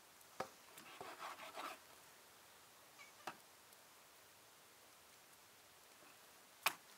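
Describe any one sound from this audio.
A knife taps sharply on a wooden board.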